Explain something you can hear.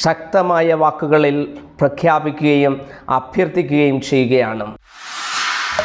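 A man speaks forcefully and close into a microphone.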